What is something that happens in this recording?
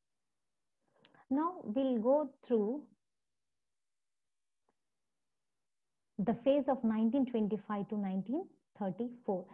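A woman speaks calmly into a microphone, heard as over an online call.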